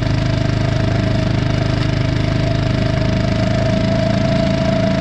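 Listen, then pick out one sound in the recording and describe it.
A metal drag harrow scrapes steadily over loose dirt.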